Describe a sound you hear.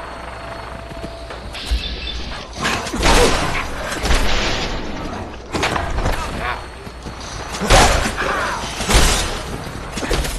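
A creature snarls and growls while attacking.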